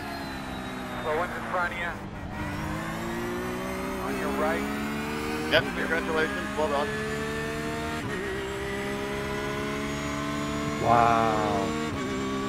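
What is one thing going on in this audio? Other racing car engines whine and buzz nearby.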